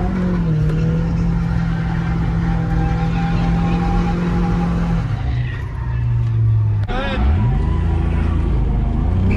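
A car engine roars loudly at high revs, shifting pitch as gears change.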